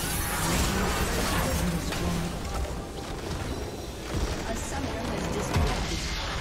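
Magic spells crackle and clash in a busy fight.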